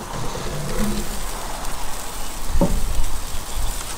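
A grill lid creaks open with a metal clank.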